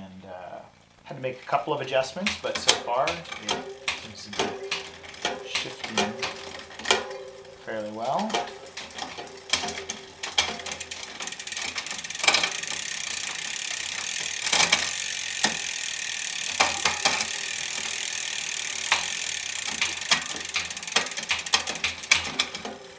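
Bicycle gears click sharply as the chain shifts across the rear sprockets.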